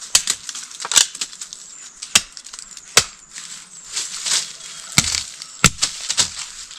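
A stick knocks sharply against wood.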